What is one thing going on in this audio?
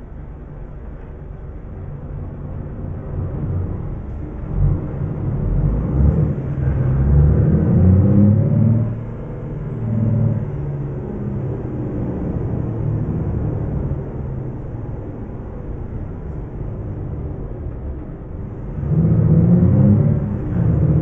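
A diesel truck engine drones as the truck drives.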